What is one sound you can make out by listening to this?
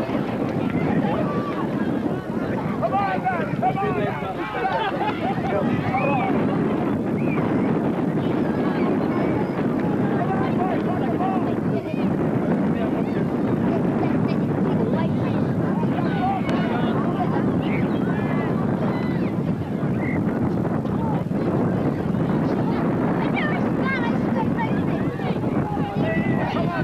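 A crowd of young men and boys shout and talk excitedly outdoors.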